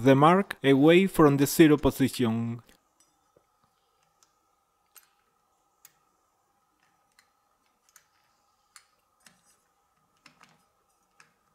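A notched metal ring clicks softly as fingers turn it.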